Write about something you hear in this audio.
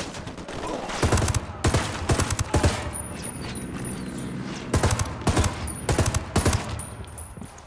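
A rifle fires in rapid bursts, echoing through a tunnel.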